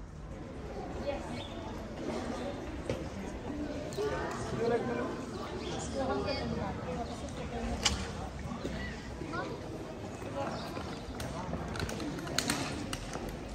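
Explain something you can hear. A crowd of people talks and murmurs nearby outdoors.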